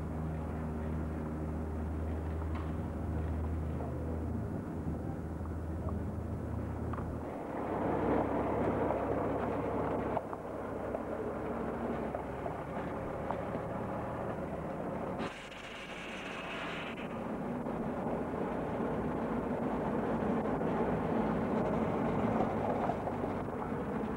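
A heavy truck engine rumbles steadily nearby.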